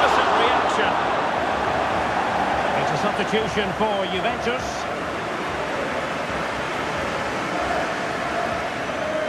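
A large crowd roars and applauds steadily.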